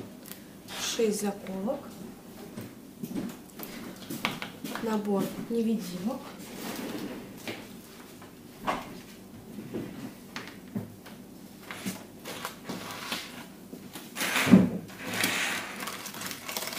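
Plastic packets rustle and tap as they are set down.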